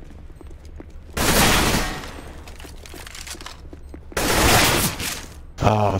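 Gunshots fire in a quick burst.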